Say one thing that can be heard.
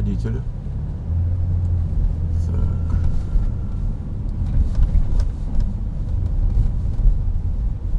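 A car engine rumbles low inside the car as it pulls away and drives.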